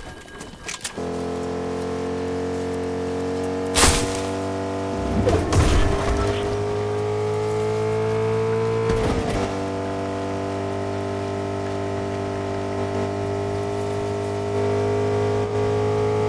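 A truck engine hums steadily and rises in pitch as it speeds up.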